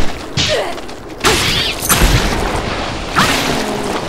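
Sword slashes swish and hit.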